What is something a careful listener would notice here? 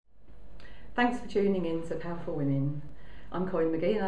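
A middle-aged woman speaks calmly and clearly, close to the microphone.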